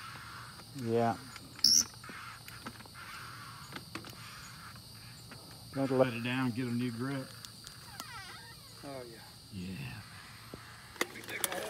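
A hydraulic jack's handle is pumped with faint metallic clicks.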